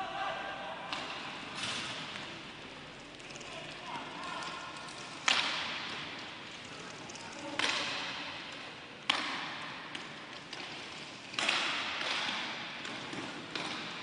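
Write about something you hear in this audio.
Hockey sticks clack against a ball in a large echoing hall.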